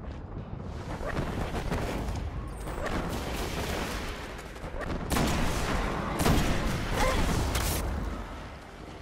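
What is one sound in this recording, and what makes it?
Gunfire from a video game rifle bursts rapidly.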